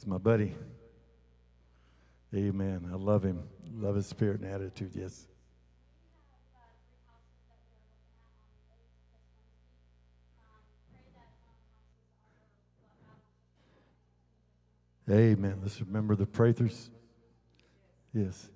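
A middle-aged man speaks through a microphone and loudspeakers in a large hall, pausing between phrases.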